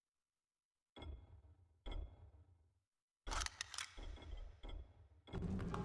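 Menu selections click and tick in short bursts.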